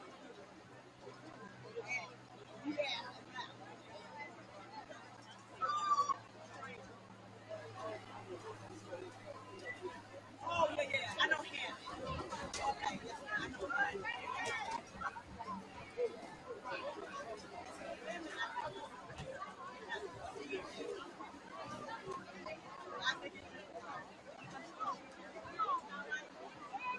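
A crowd of people chatters and shouts across a large open field outdoors.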